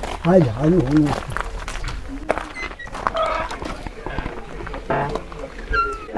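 A door handle rattles as a door is opened.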